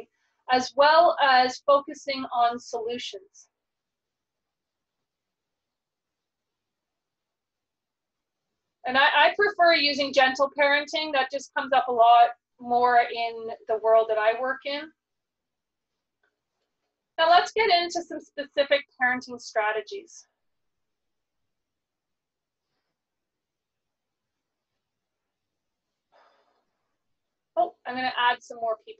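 A young woman speaks calmly and clearly into a microphone, heard as if over an online call.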